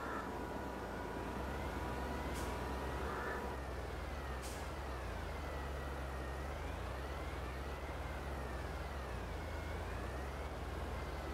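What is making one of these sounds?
A tractor engine hums steadily and rises and falls in pitch as the tractor drives.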